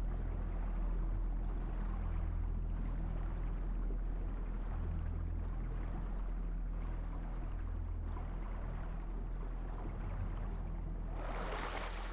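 A deep, muffled underwater rumble drones steadily.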